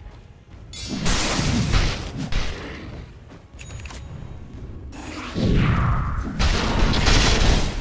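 Spell effects crackle and burst in a fantasy battle.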